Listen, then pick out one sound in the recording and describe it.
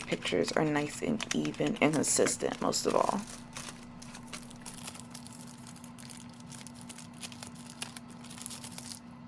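Plastic wrapping crinkles and rustles as hands handle it.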